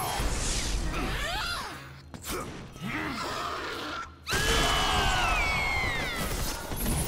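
A creature lets out shrill, gliding shrieks.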